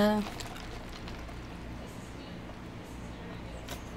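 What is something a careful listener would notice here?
A young woman sips a drink through a straw.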